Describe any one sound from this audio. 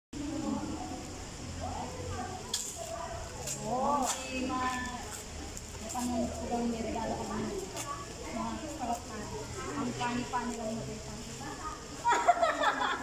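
A second young woman answers with animation.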